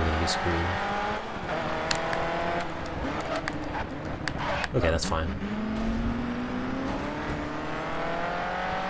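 A race car engine roars, rising in pitch and dropping sharply as it shifts gears.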